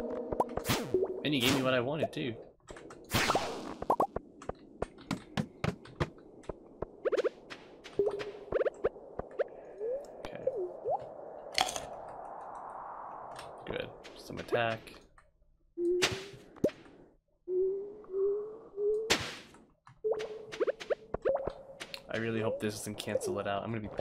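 Short electronic sound effects click and chime again and again.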